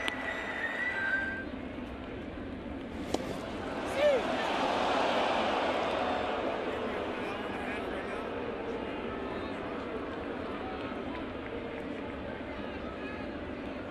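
A large stadium crowd murmurs and cheers, swelling loudly for a moment.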